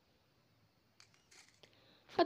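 Cloth rustles and brushes close by.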